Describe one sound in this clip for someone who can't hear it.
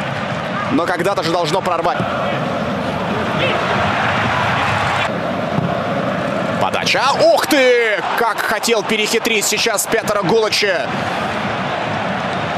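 A large crowd roars in a stadium.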